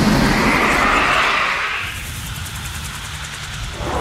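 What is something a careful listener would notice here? A helicopter's engine and rotor drone steadily.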